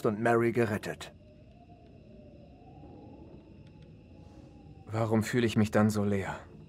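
A young man speaks close into a microphone.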